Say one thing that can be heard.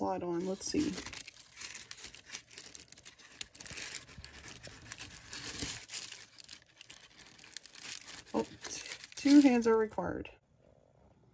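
Tissue paper rustles and crinkles close by.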